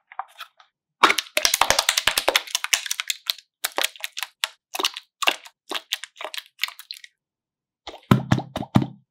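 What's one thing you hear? Slime squelches and pops as hands squeeze it out of a cup.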